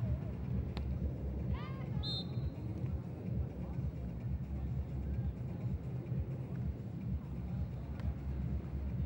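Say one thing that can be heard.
A volleyball is struck hard by a hand with a sharp slap.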